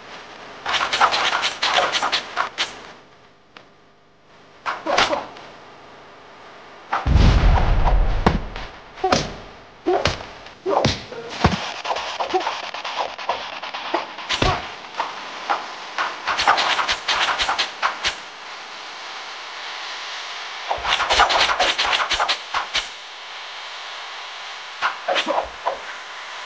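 Blades and chains swish and clash in a fast game fight, with sharp hits.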